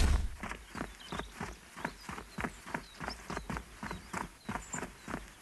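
Footsteps crunch steadily over dry grass.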